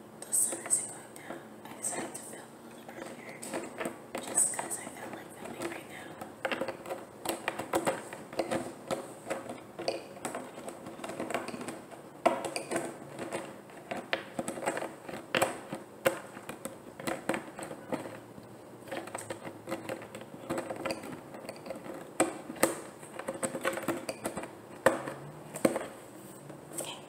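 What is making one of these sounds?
A large plastic water jug crinkles and crackles as hands handle it.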